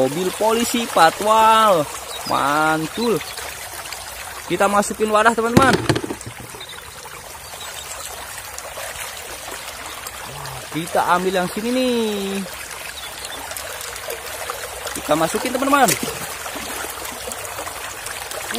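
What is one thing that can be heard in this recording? Water rushes and splashes over rocks.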